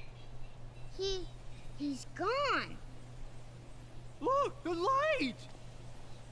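A child's voice exclaims in alarm.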